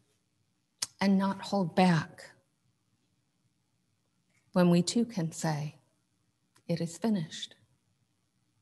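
An elderly woman speaks calmly and slowly into a close microphone, with long pauses.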